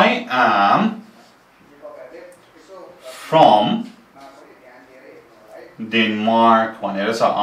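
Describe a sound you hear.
A young man speaks clearly and slowly, close by.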